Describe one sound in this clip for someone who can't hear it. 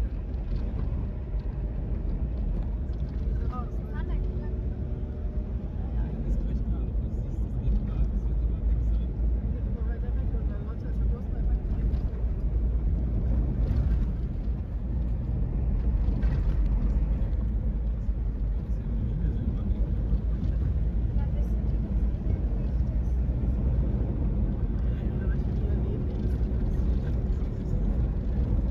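Tyres rumble steadily over a dirt road.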